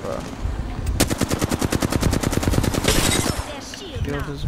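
A rapid burst of automatic gunfire rattles loudly.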